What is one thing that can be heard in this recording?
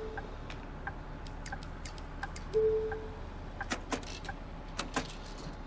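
Buttons click on a ticket machine.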